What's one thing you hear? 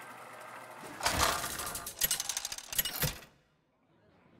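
A loud mechanical spinning clatter rings out and stops with a thud.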